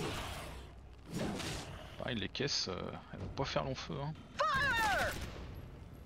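Laser guns fire in short bursts.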